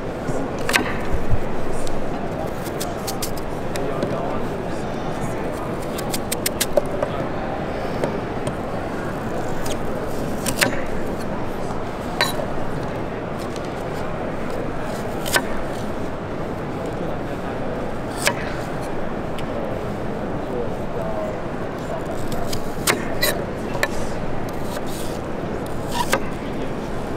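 A knife slices through crisp apple.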